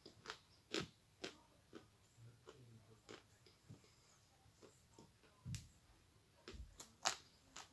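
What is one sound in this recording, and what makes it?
Tissue paper crinkles close by.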